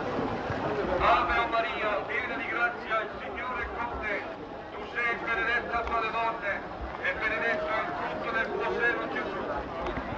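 Onlookers chat nearby.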